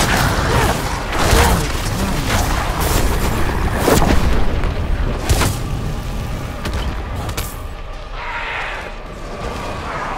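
Weapons slash and strike with sharp thuds.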